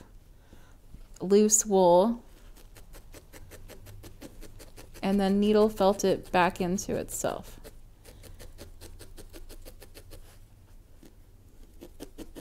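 A felting needle pokes rapidly into wool over a foam pad.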